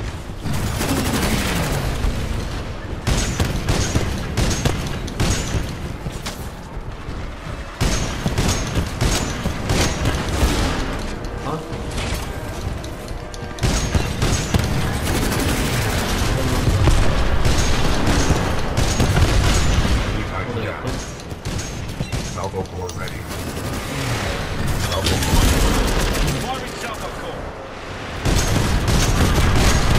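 A heavy gun fires rapid bursts of loud shots.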